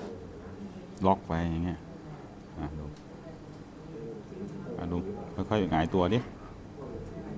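A man speaks briefly and calmly into a close microphone.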